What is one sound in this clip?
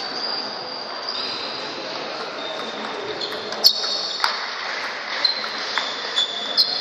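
Shoes squeak on the floor of an echoing hall.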